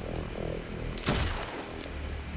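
A gunshot cracks once.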